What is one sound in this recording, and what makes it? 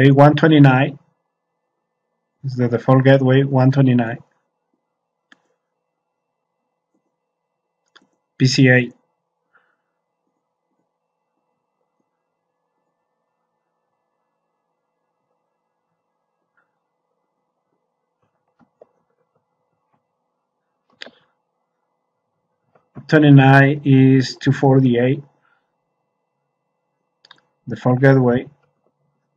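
A man speaks calmly into a microphone in short bursts.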